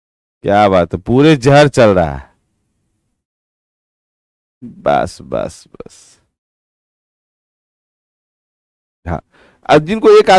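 A man speaks with animation into a close microphone, with long pauses.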